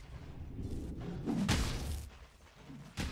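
A fiery spell in a video game bursts with a loud whoosh.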